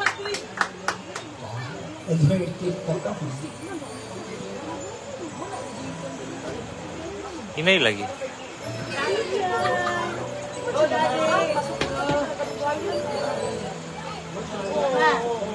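A woman plays an acoustic guitar.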